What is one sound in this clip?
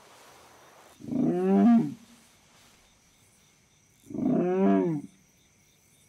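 A wolf lets out two short, rising and falling howls close by.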